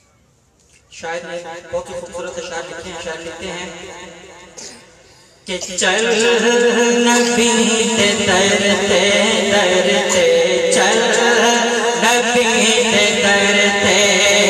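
A man sings a chant loudly through a microphone and loudspeakers.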